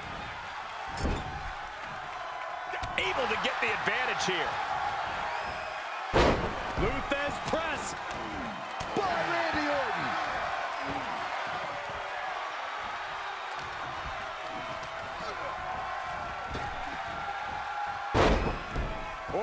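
Heavy thuds ring out as wrestlers slam onto a ring mat.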